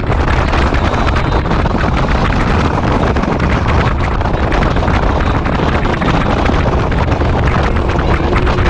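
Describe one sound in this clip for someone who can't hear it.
Wind roars loudly against a microphone outdoors.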